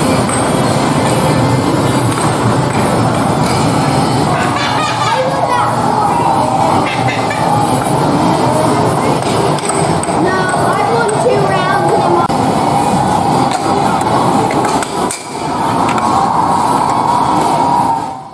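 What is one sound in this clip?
Arcade machines chime and play electronic music all around in a busy, noisy hall.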